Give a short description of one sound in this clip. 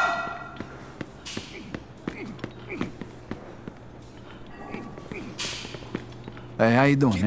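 Footsteps tap steadily on a hard stone floor.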